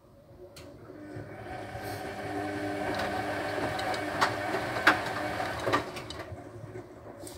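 A washing machine hums and whirs as its drum spins up.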